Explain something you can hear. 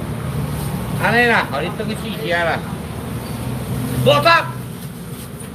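A man calls out loudly nearby.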